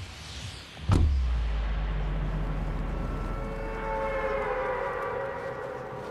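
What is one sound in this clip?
Wind rushes loudly past a falling skydiver.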